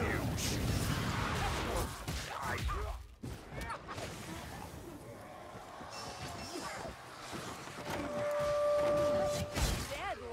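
Creatures groan and shriek in combat.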